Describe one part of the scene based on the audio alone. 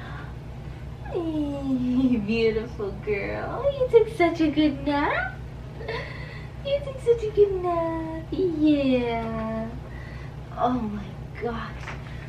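A young woman speaks softly and gently.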